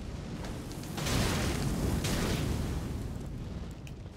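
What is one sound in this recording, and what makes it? Fire roars in a burst of flames.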